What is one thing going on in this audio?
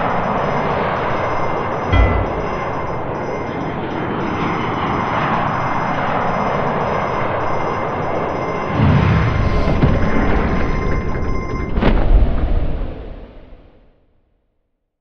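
A jet engine roars steadily, then fades away.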